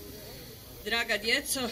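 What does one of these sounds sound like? A woman begins speaking through a microphone and loudspeakers.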